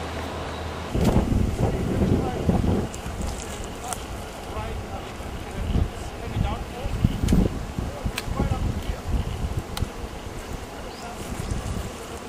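A large crowd of adults murmurs and chatters outdoors nearby.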